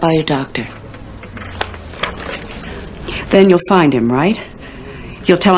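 A second woman answers in a tense, worried voice, close by.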